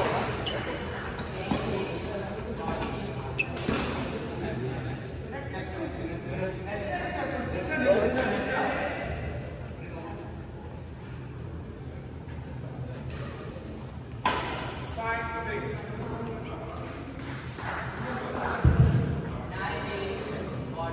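Men talk casually in the echoing hall.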